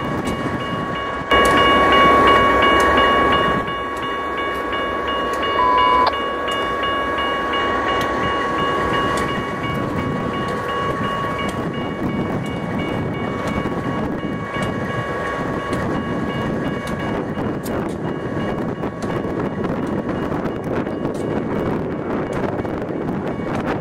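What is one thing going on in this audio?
A railway crossing bell dings rapidly and steadily.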